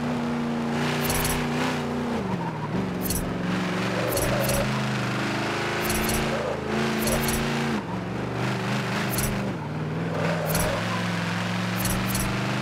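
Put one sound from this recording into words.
Tyres squeal on tarmac through the turns.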